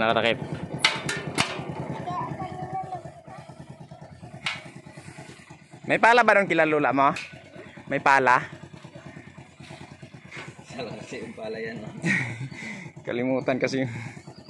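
A small engine putters steadily.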